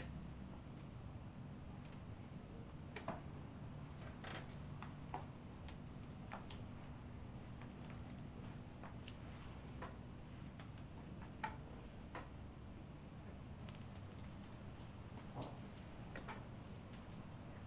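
Hands rub and pat on bare skin with soft clicks.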